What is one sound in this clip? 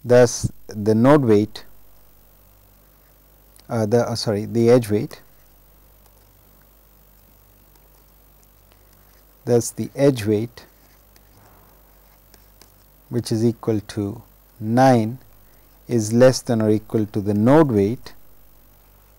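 A young man speaks calmly and slowly into a close microphone, in short phrases with pauses.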